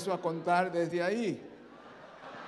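A man sings a short phrase through loudspeakers in a large echoing hall.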